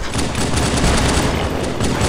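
An energy blast bursts with a loud crackling whoosh.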